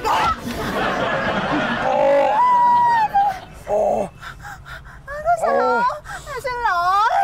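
A young woman shouts and wails in distress up close.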